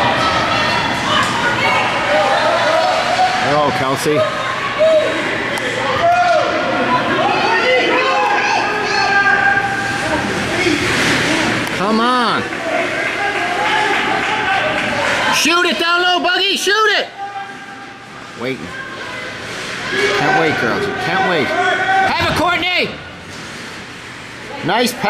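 Children shout and call out in a large echoing rink.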